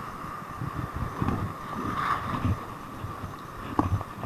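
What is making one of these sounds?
Waves crash and surge against rocks outdoors.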